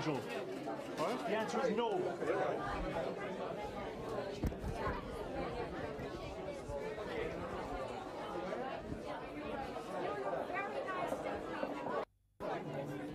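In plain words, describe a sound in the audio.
A crowd of people chatters loudly and close by.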